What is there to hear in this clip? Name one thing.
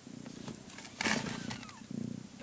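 A blanket rustles as a cat shifts.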